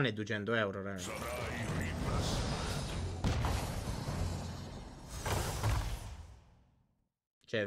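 Game effects whoosh and chime loudly.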